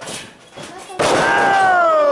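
A wrestler slams onto a wrestling ring mat with a thud.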